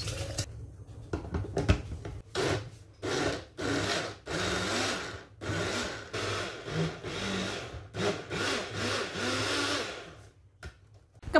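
A blender whirs in short, loud bursts.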